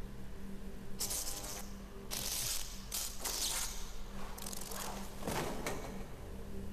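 Electric sparks crackle and snap.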